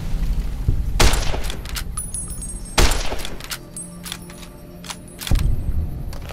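Loud gunshots ring out, each followed by a rolling echo.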